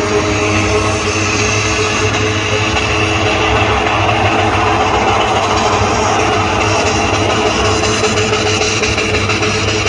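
Tyres screech loudly on the tarmac.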